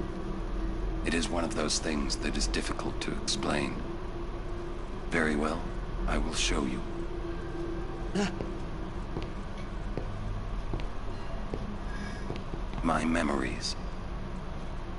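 A deep-voiced man speaks calmly and slowly.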